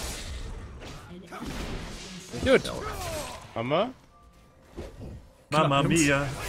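Game spell and combat effects crackle and whoosh.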